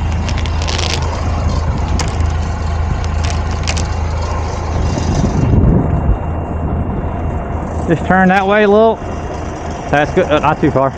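A large truck engine rumbles steadily nearby.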